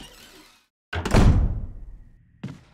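A heavy wooden door slams shut.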